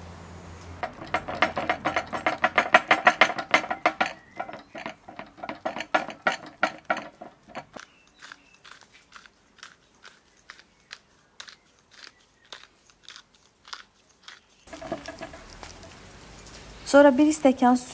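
A fork scrapes and taps rapidly against a metal pan.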